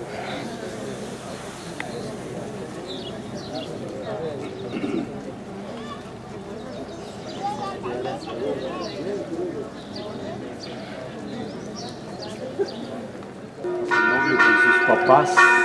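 A crowd of men and women chat nearby outdoors.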